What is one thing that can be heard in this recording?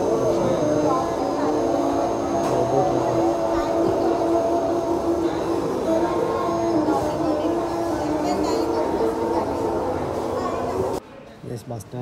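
A saxophone tune plays loudly.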